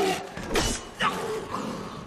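A man yells out during a fight.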